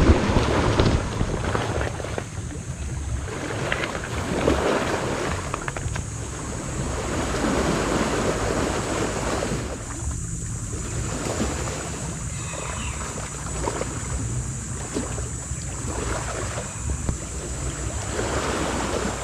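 Wind blows steadily outdoors with a low rumble.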